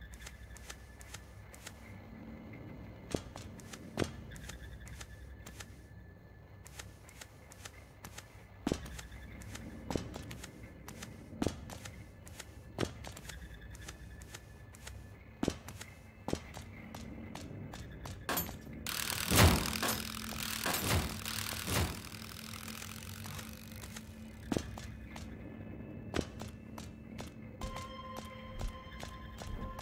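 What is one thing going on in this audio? Video game sound effects blip and thud.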